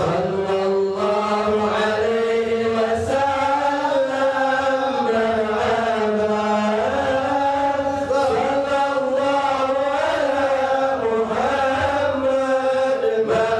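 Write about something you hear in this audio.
A man chants a prayer in a long, melodic voice through a microphone.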